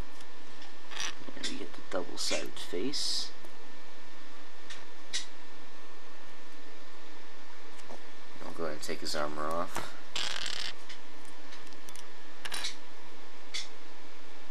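Small plastic toy parts click and snap together.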